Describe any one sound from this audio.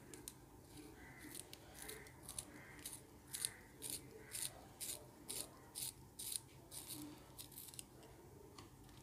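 A pencil scrapes rhythmically in a small hand sharpener.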